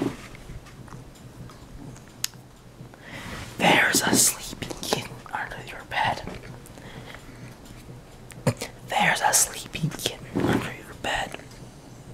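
A dog licks and snuffles close by.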